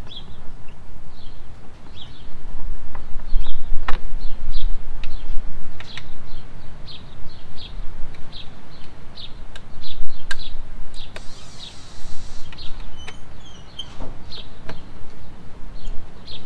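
A hand tool clicks and taps against metal parts of a motorcycle.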